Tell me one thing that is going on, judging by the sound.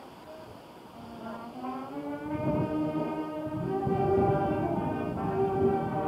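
A crowd of men and women sing together.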